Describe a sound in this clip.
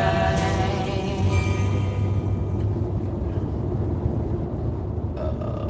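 A car's engine and tyres rumble steadily from inside the cabin.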